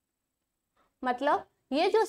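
A woman speaks clearly into a microphone, as if teaching.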